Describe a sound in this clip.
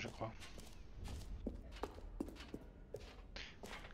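Footsteps tap on a hard concrete floor.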